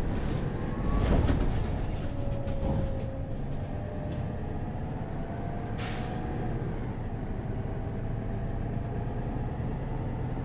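A bus rolls over the road with a low rumble.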